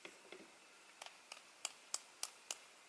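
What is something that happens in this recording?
A paintbrush taps, flicking paint onto paper.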